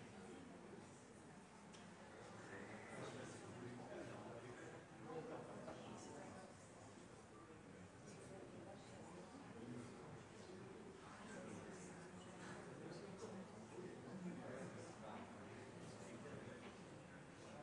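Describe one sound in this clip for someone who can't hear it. Several men and women chat quietly among themselves in a large, echoing room.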